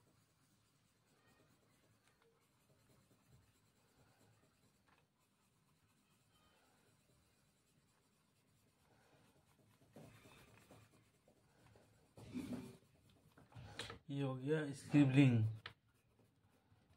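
A pencil scratches quickly on paper.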